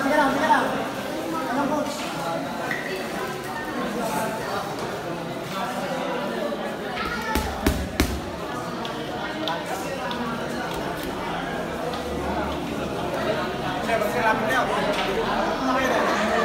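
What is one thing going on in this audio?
A crowd murmurs in the background.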